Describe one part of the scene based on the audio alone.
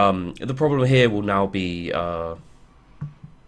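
A young man speaks loudly and animatedly into a microphone, drawing out his words.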